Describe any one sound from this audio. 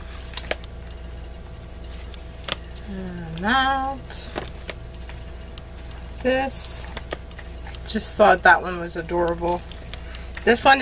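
Books rustle and tap as they are handled and set down.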